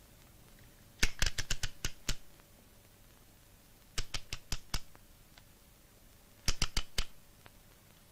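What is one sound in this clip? A clock's winding key clicks and ratchets.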